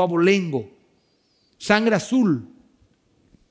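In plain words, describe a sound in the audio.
A man speaks with emphasis into a microphone, with pauses.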